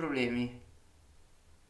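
A man speaks briefly into a close microphone.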